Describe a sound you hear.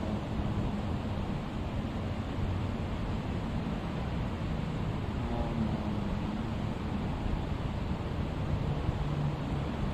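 Electric fans whir steadily.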